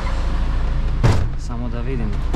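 A truck cab door slams shut.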